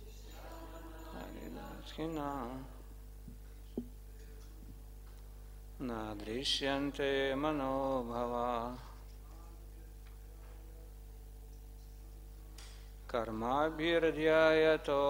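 A middle-aged man reads aloud slowly into a microphone, in phrases with pauses between them.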